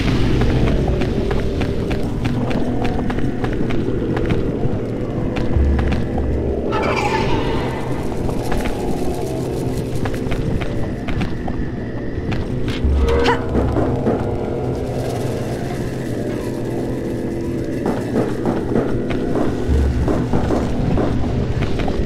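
Footsteps patter quickly on stone and wooden boards.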